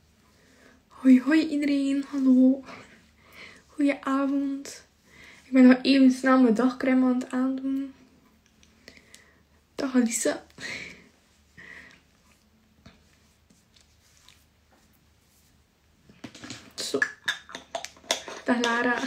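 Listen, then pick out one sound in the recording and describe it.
A young woman talks calmly and close up.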